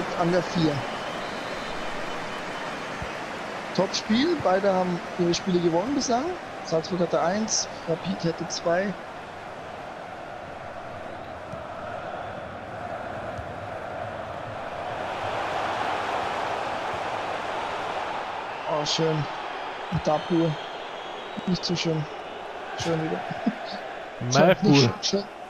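A stadium crowd murmurs and roars steadily in the background.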